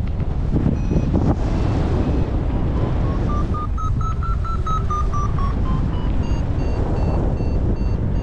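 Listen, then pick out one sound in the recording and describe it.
Strong wind rushes and buffets loudly in open air.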